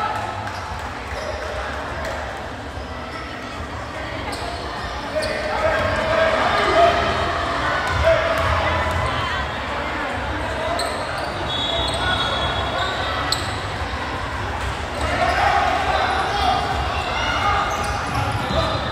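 A crowd chatters and shouts in a large echoing gym.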